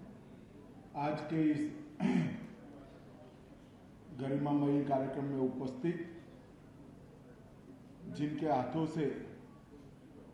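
A middle-aged man speaks slowly and firmly into a microphone, heard through loudspeakers in a large hall.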